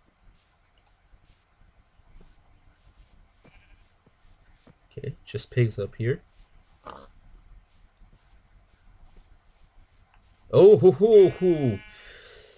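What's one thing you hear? Footsteps fall softly and steadily on grass.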